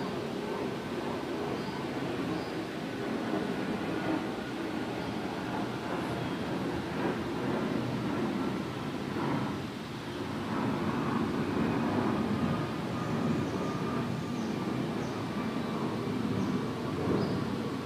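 An elderly man speaks calmly and steadily into a microphone.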